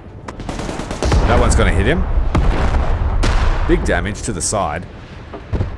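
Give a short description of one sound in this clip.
An explosion booms with a deep, rolling rumble.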